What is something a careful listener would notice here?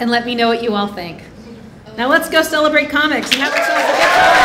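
A woman speaks cheerfully into a microphone.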